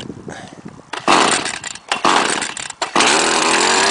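A pull cord rasps as it is yanked to start a small engine.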